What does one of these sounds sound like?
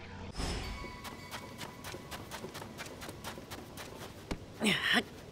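Quick footsteps patter on soft sand.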